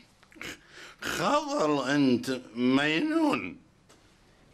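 An elderly man speaks with agitation close by.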